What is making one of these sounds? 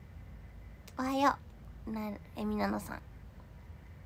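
A young woman speaks briefly in a high voice, close to the microphone.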